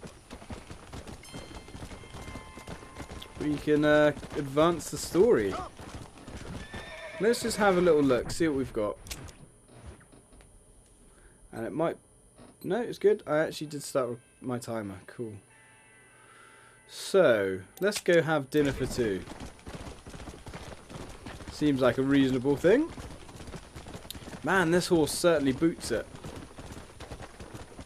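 A horse gallops, hooves thudding on soft ground.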